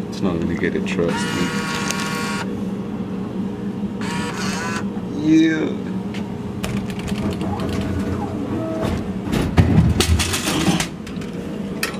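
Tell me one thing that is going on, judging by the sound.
A vending machine hums steadily.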